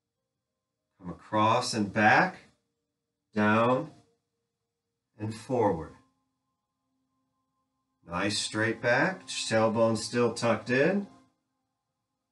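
A man speaks calmly and clearly, as if instructing.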